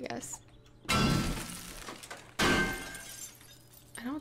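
An axe strikes a wooden door with heavy thuds.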